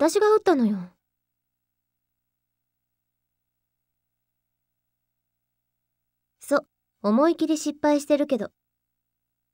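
A young woman speaks brightly and cheerfully, close up.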